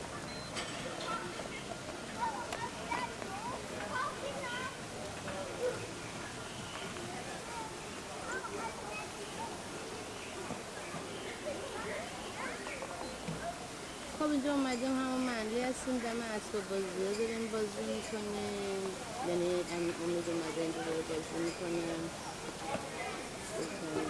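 Young children chatter and call out nearby outdoors.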